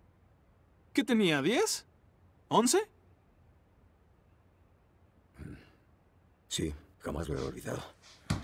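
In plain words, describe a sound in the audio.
An older man answers briefly in a low voice.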